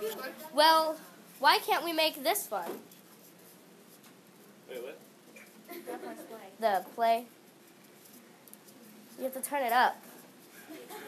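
Young women speak with animation in turn, close by in a room.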